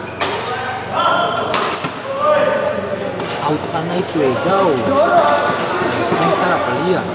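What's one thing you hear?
Several men talk and call out in a large echoing hall.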